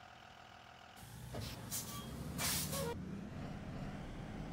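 A bus engine revs up louder as the bus pulls away.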